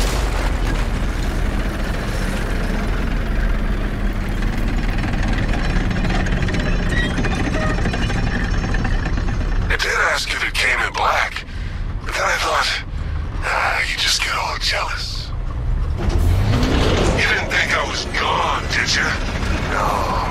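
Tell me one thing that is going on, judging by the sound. Huge metal gears grind and rumble.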